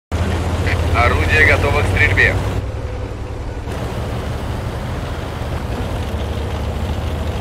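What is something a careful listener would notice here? A heavy tank engine rumbles low and steadily.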